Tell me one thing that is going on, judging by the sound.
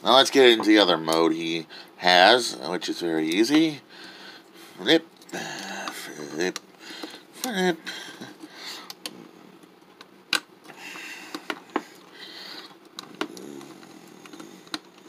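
Plastic parts of a toy click and snap as they are folded into place.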